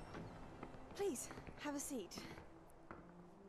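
A woman speaks politely and calmly.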